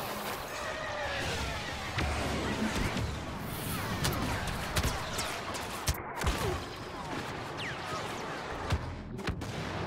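Laser shots whine and zip past.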